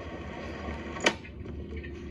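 A briefcase latch clicks sharply.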